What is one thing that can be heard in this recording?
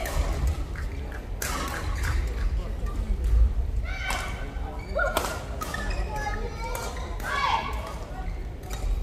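Shuttlecocks are struck sharply with rackets, over and over, in a large echoing hall.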